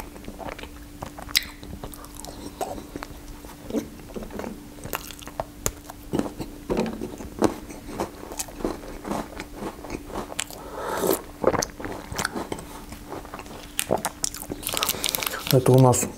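A young man chews food with wet smacking sounds close by.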